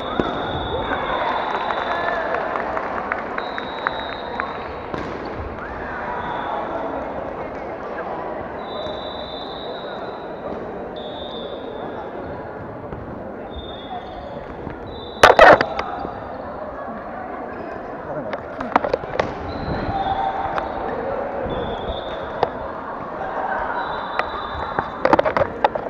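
Voices of many people echo in a large hall.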